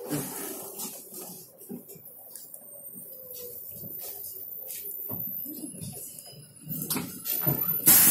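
Traffic hums on a road outside a moving vehicle.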